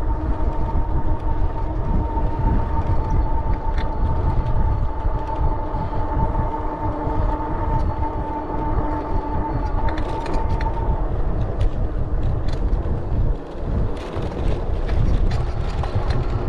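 Wind rumbles loudly past a moving rider outdoors.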